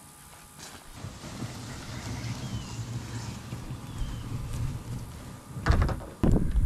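A plastic kayak scrapes as it is dragged across grass.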